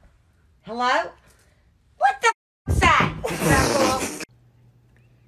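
An elderly woman exclaims loudly close by.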